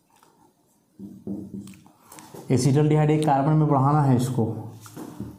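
A man speaks calmly, explaining, close by.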